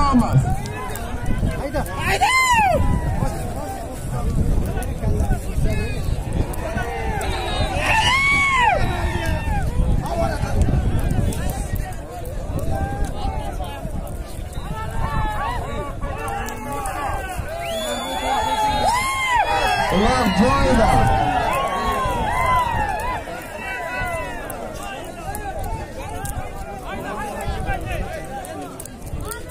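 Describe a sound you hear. A large outdoor crowd murmurs and shouts.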